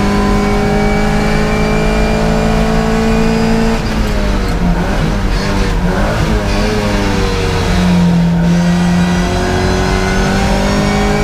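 A classic Mini's four-cylinder racing engine revs hard under load.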